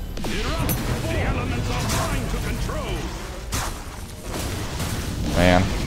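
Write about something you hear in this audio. Magic spells whoosh and burst in a video game.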